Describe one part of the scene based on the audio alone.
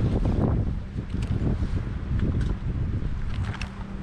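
Plastic binder pages rustle and flap as they are turned.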